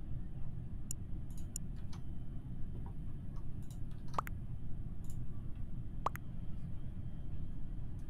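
A young woman talks quietly into a nearby microphone.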